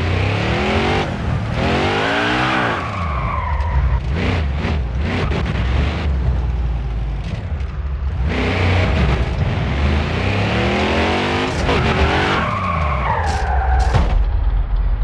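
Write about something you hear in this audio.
A race car engine roars loudly, revving up and down through the gears.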